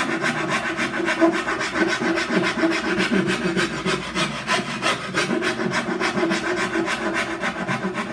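A gouge scrapes and shaves wood in quick, steady strokes.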